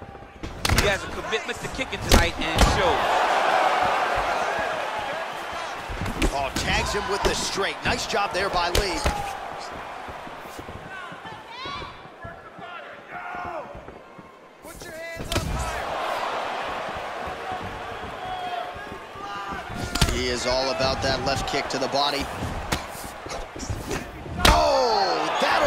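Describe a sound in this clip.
Punches and kicks land with hard thuds.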